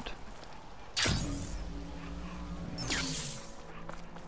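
A spear strikes a metal creature with a sharp clang.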